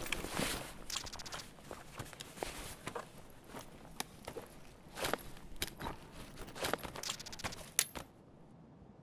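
Gear rustles and clicks as items are packed away.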